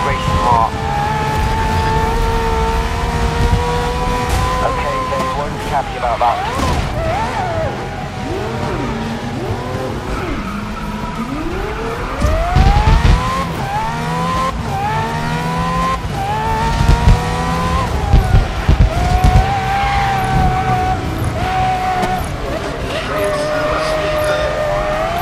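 A racing car engine whines loudly, rising and falling in pitch as it speeds up and slows down.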